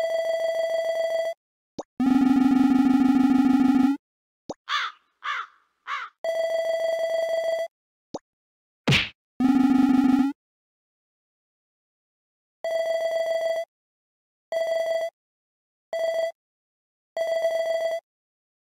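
Rapid electronic blips chatter in short bursts.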